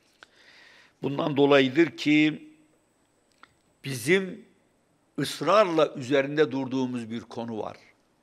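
An elderly man speaks calmly into a microphone, in pauses.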